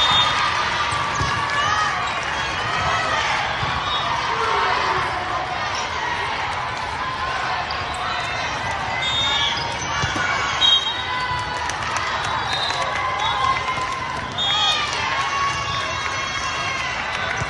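A crowd of spectators cheers and shouts in a large echoing hall.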